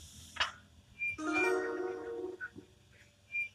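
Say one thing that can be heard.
A metal valve wheel squeaks as it turns.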